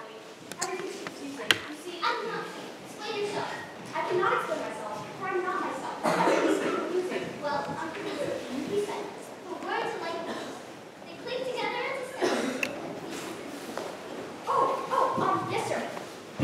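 A girl answers in a high voice.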